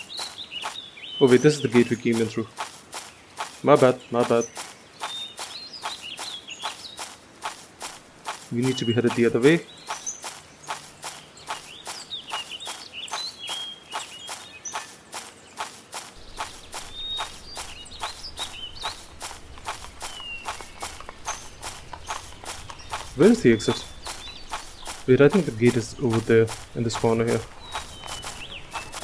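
Footsteps run quickly and steadily over the ground.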